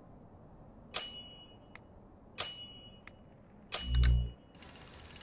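Soft chimes ring as pieces click into place.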